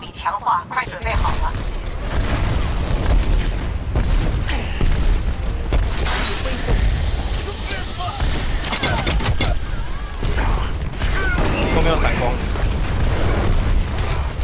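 Gunfire rattles rapidly with heavy booms.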